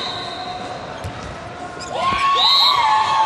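A volleyball is hit with dull thumps.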